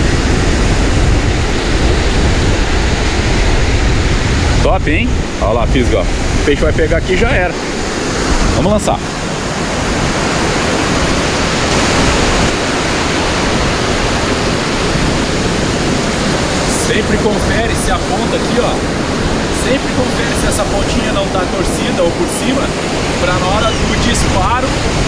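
Surf washes onto a sandy beach.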